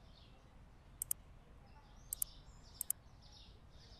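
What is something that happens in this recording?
Short, sharp menu clicks sound in quick pairs.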